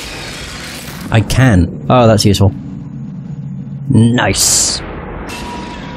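Glass-like pieces shatter and scatter.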